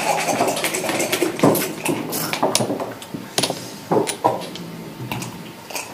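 Checkers click as they are moved on a wooden board.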